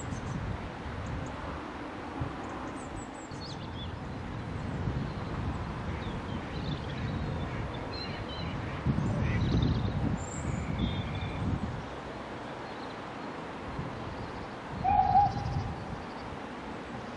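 Wind blows steadily across open ground, gusting now and then.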